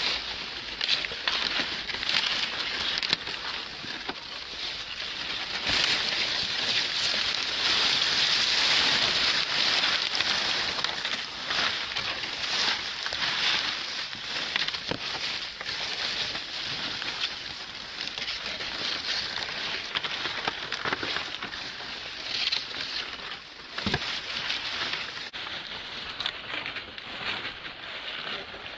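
Dry corn leaves rustle and crackle as someone pushes through them.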